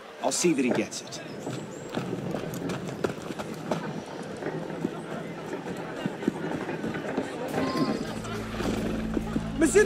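Footsteps run quickly on cobblestones.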